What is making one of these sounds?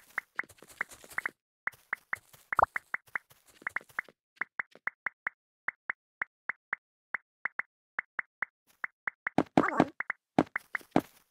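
Short bright pops repeat quickly as items are picked up in a game.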